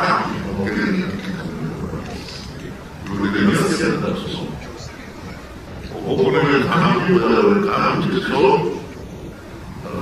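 A middle-aged man speaks emphatically into a microphone, heard through a loudspeaker.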